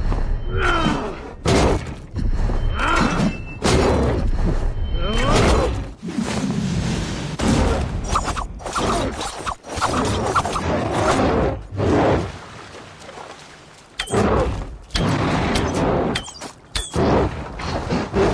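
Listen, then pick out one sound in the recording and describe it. A bear roars and growls loudly.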